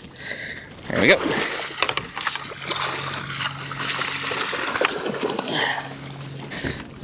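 Water splashes as a fish thrashes at the surface.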